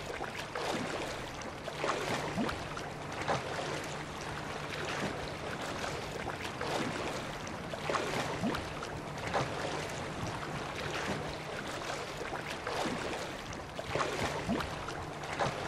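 Waves lap steadily on the open sea.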